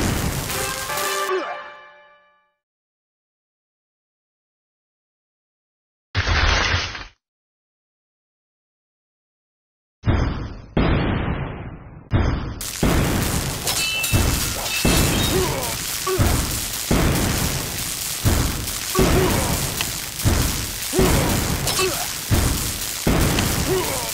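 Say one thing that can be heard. Lasers zap in quick bursts.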